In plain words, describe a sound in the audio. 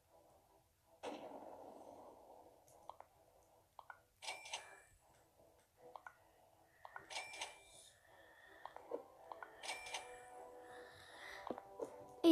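Short game menu clicks tick now and then.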